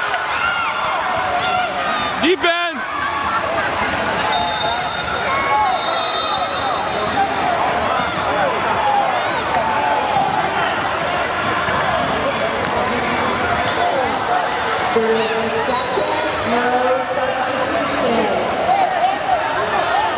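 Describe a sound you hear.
A crowd of spectators chatters and calls out throughout a large echoing gym.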